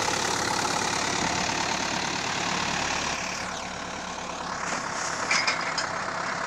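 A tractor engine runs with a steady rumble nearby.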